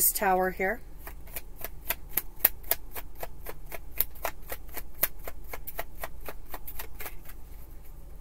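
Playing cards riffle as they are shuffled.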